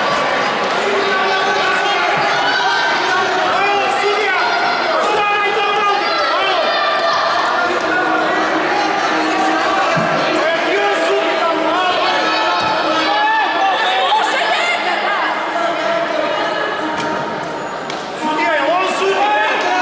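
Young women shout and call to each other in an echoing sports hall.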